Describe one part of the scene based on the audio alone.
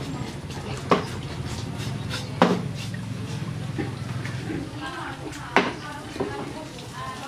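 Hot water pours and splashes from a pot.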